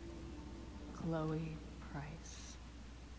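A young woman speaks briefly and calmly.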